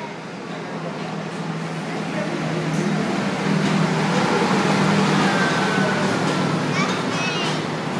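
A steam locomotive chugs past close by with a deep rumble.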